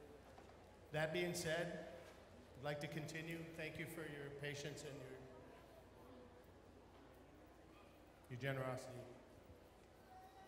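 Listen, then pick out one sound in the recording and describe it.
A man speaks calmly into a microphone, heard over loudspeakers in a large echoing hall.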